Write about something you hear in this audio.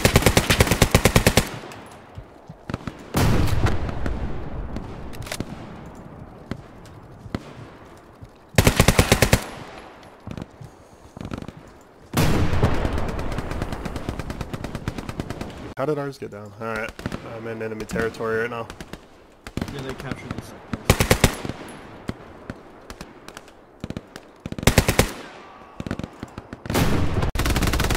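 A machine gun fires loud rapid bursts outdoors, echoing across open ground.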